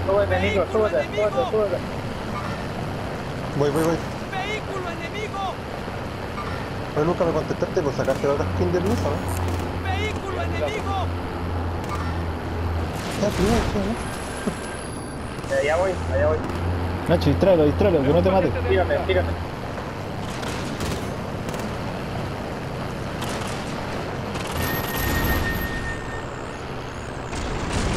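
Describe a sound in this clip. A heavy truck engine rumbles steadily as it drives.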